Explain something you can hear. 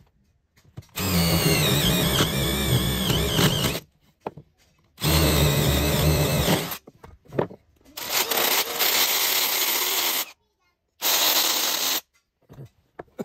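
A cordless drill whirs in loud bursts, driving screws into wood.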